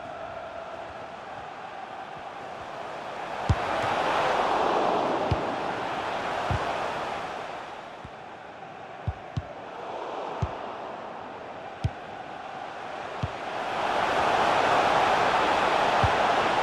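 A crowd roars steadily, swelling and fading in waves.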